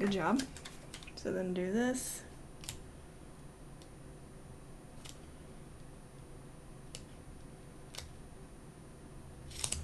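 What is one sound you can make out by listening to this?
A sticker peels softly off its backing sheet.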